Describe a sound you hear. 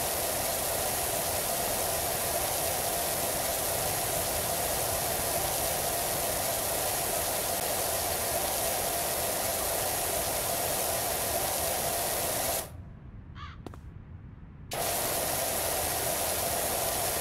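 A pressure washer sprays a steady hissing jet of water, briefly stopping and starting again.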